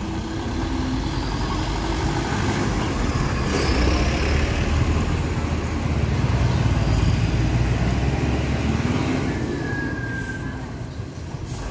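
A motorbike engine putters past close by.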